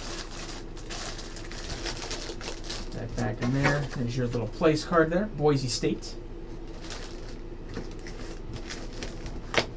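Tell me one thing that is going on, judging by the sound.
Cardboard and plastic packaging rustle as hands handle them.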